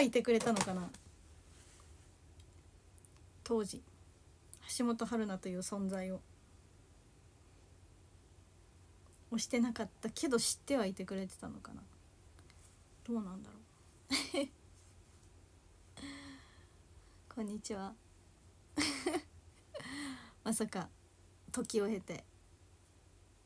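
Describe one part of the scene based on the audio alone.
A young woman speaks casually and close by, with pauses.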